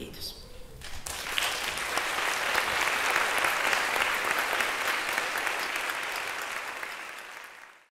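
An audience applauds loudly, then the applause fades.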